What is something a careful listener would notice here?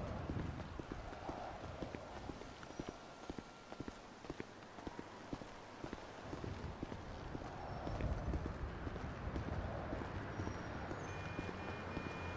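Footsteps tap steadily on hard ground.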